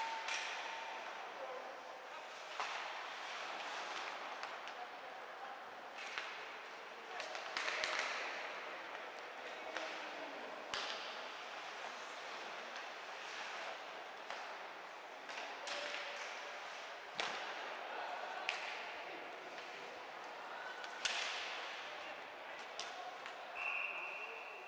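Hockey sticks clack sharply against the puck.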